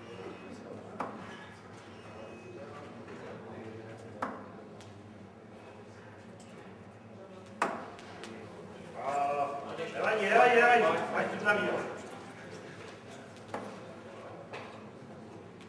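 Darts thud sharply into a dartboard, one after another.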